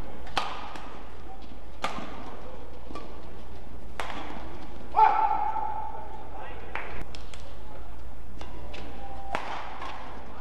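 Shuttlecocks are struck sharply with rackets in a fast rally, in a large echoing hall.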